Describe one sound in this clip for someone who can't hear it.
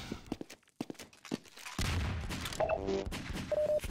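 A weapon hums and crackles with electric energy.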